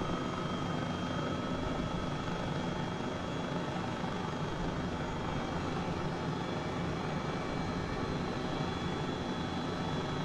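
A helicopter's engine and rotor drone steadily from inside the cabin, with a high turbine whine.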